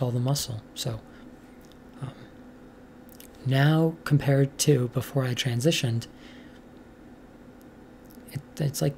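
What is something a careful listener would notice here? A young woman talks calmly, close to a microphone, in short bursts with pauses.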